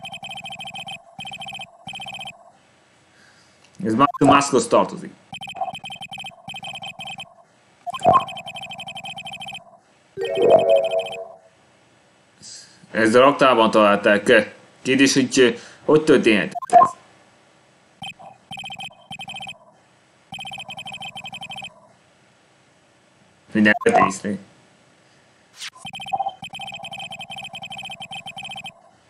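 Rapid electronic blips chatter in quick bursts.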